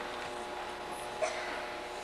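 A young boy claps his hands a few times.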